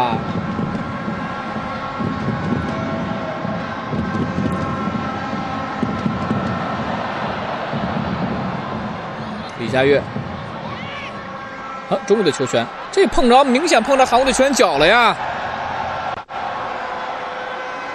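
A stadium crowd roars and chants steadily, echoing in a large open arena.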